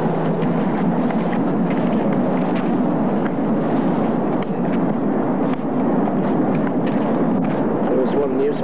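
A crowd of men chants together outdoors.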